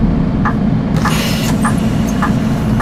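Bus doors open with a sharp hiss of air.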